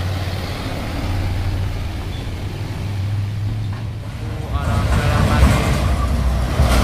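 Heavy truck engines rumble as trucks drive past close by.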